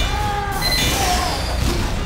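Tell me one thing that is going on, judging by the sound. A flamethrower roars in a short burst.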